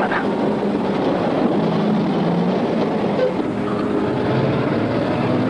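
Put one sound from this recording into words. A heavy truck engine rumbles as the truck drives closer along a road.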